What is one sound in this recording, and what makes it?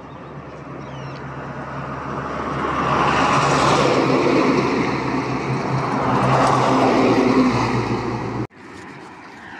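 A truck engine rumbles past, growing louder and then cutting off.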